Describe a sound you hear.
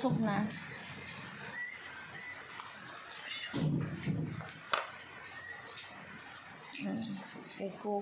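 A dog's paws patter on a hard floor.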